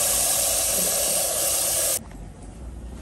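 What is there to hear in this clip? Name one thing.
Water pours from a tap into a metal pot.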